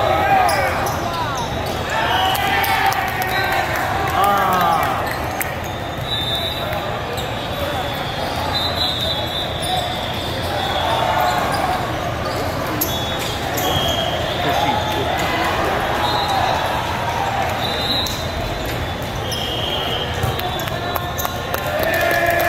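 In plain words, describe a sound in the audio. A crowd of voices echoes steadily through a large hall.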